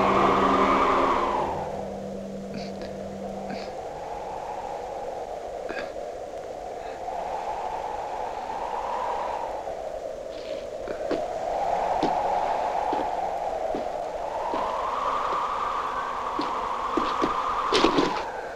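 Wind howls and gusts outdoors, rising and falling in waves.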